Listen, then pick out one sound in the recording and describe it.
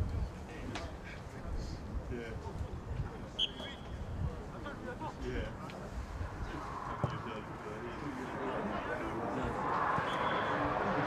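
Wind blusters across an open field.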